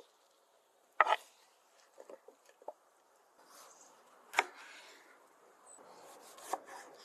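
A knife slices through a tomato onto a wooden board.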